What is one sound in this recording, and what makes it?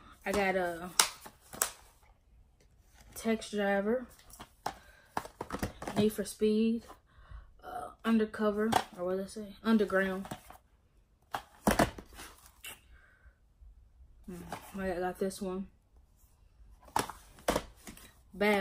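Plastic game cases clack as they are handled.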